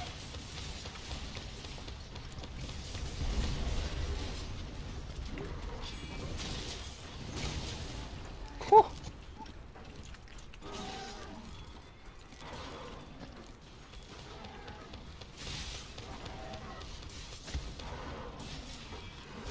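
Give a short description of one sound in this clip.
Weapon blows and blasts thud and crash throughout a game fight.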